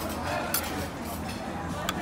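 A knife scrapes across a plate.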